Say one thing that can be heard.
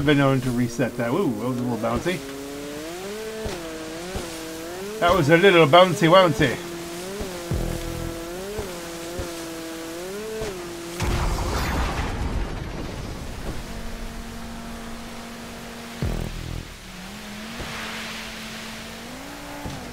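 A jet ski engine revs and drones, rising and falling in pitch.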